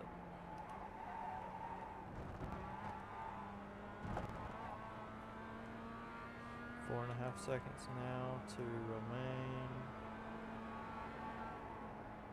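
A racing car engine hums steadily at high revs.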